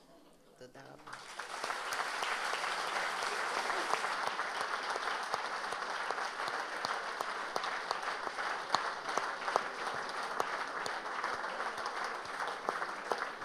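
An audience applauds loudly and steadily.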